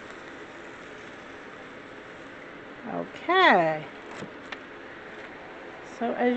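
Paper rustles softly as a sheet is lifted and peeled away.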